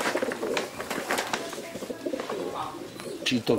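A wooden crate rattles and knocks as it is handled.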